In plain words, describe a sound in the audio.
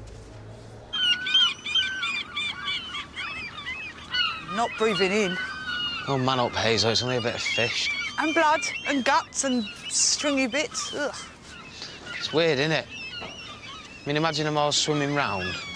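Seagulls cry repeatedly nearby.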